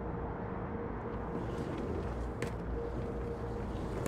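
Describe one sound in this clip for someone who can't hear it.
A drawer slides open.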